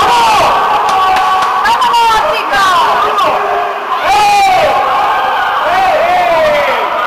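Swimmers splash and thrash in the water of an echoing indoor pool.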